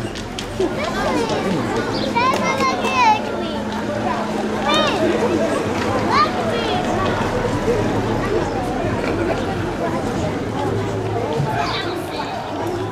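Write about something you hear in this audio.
A crowd of men and boys shouts and calls out loudly outdoors.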